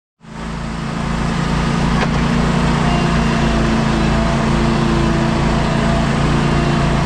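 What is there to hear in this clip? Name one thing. A riding lawn mower engine runs steadily close by.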